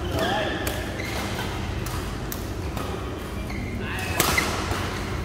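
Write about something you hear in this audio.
Rackets smack shuttlecocks in a large echoing hall.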